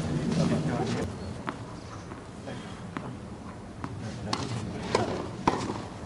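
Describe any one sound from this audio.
A tennis ball bounces on a hard court several times.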